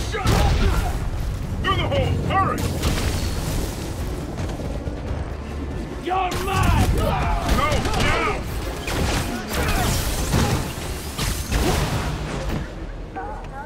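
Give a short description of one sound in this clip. Punches and kicks thud in a fast fight.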